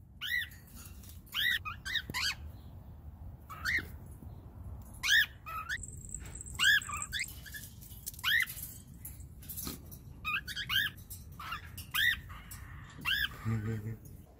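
Cockatiels give sharp rising whistle calls.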